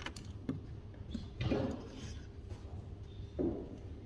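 Paper rustles as a sticky note is pressed down.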